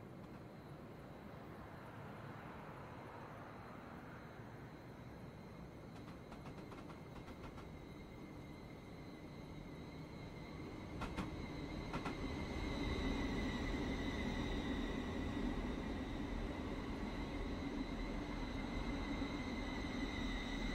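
A train approaches and rumbles closer, growing louder.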